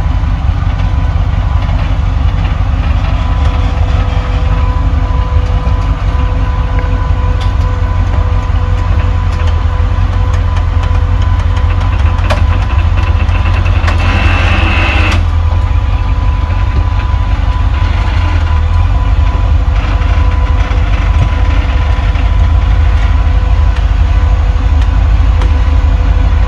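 An off-road buggy's engine rumbles loudly as it crawls over rocks.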